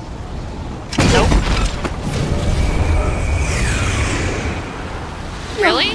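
A loud blast booms and roars.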